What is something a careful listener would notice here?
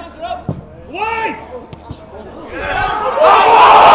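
Men shout to each other on an outdoor pitch.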